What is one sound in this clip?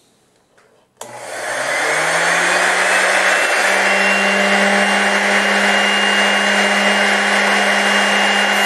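A small electric motor switches on, whirs up to speed and runs with a steady high hum.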